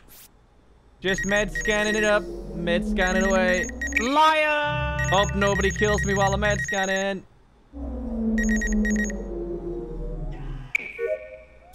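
An electronic scanner hums steadily with warbling tones.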